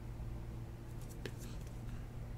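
A plastic card sleeve crinkles softly in hands.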